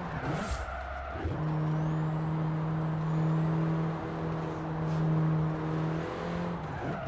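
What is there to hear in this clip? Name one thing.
A car engine hums steadily and revs as the car drives along.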